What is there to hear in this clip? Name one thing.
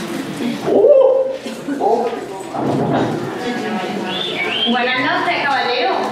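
A young man speaks loudly on a stage.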